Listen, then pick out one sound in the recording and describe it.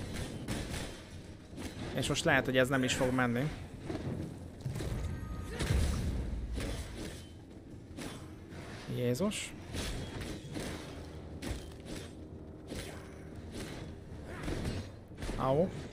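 Game combat sounds of blows and magic effects clash and whoosh.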